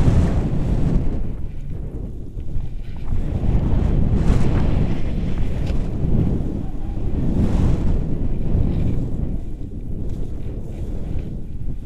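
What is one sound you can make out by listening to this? Wind roars and buffets loudly against the microphone.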